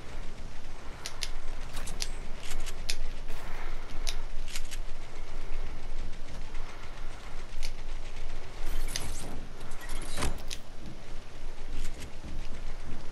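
Building pieces snap into place with sharp clicks.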